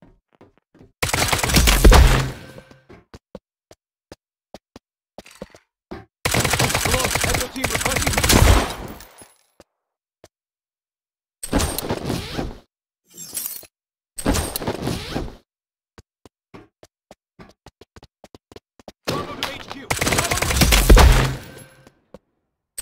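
Automatic gunfire rattles in loud bursts.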